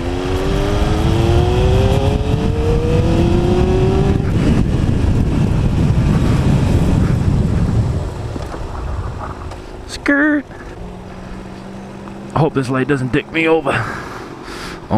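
A motorcycle engine revs up, rising in pitch, then settles to a low idle.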